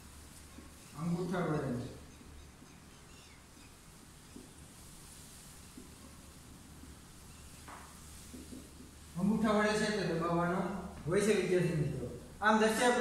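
A young man speaks clearly and calmly, close by.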